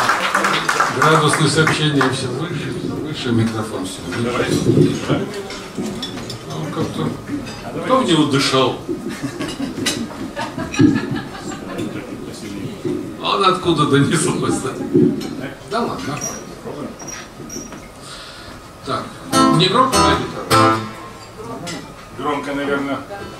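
An elderly man speaks calmly into a microphone, heard over a loudspeaker.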